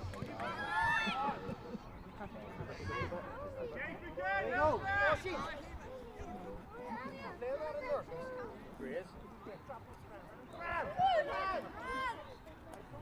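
Young boys shout loudly to each other outdoors across an open field.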